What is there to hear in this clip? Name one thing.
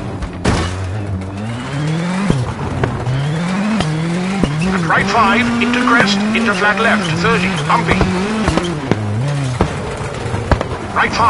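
Stones clatter against the underside of a car.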